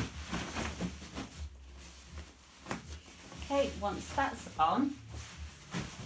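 Fabric rustles as hands smooth a quilt.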